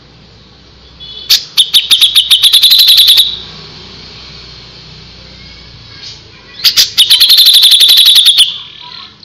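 A small songbird sings a fast, rapid string of sharp, ringing notes in bursts.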